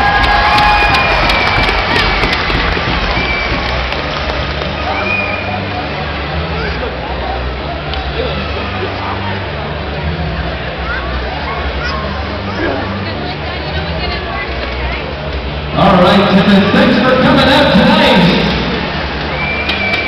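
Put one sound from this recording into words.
A crowd murmurs and calls out in a large echoing arena.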